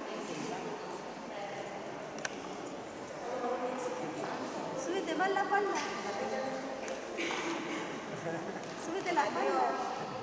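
Young children chatter and call out in a large echoing hall.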